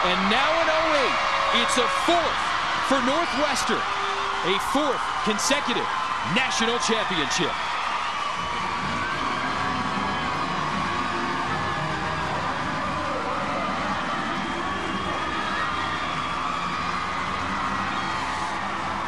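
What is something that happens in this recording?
A large crowd cheers and roars outdoors.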